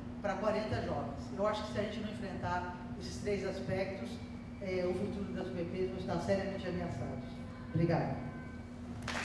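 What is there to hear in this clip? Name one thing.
A middle-aged woman speaks calmly into a microphone in an echoing room.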